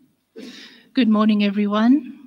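A middle-aged woman sings a long note through a microphone.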